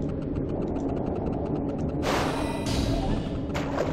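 A magic spell crackles and whooshes.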